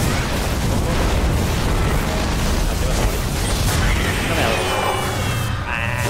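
Fiery magic blasts crackle and boom in quick succession.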